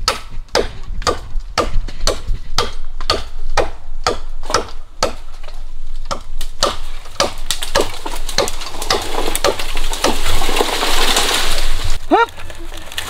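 A blade chops into bamboo with steady, rhythmic blows.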